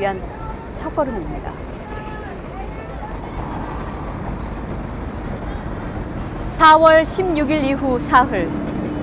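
A young woman speaks calmly and clearly into a close microphone.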